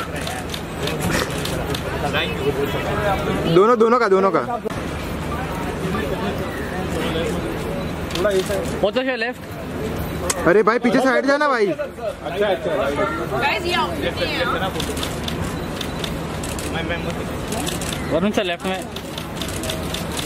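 A crowd of people chatters and calls out nearby, outdoors.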